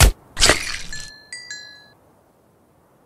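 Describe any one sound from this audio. Small items pop out with short bright chimes.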